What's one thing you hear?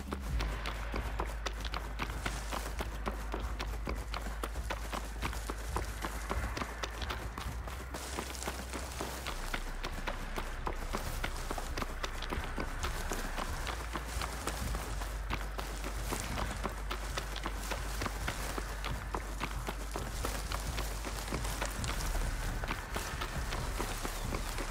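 Footsteps run quickly over dry, crunchy ground.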